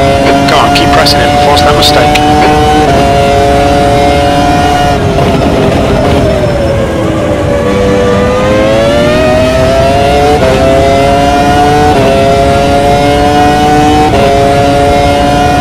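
A racing car engine screams at high revs, dropping in pitch while braking for a corner and rising again through the gears.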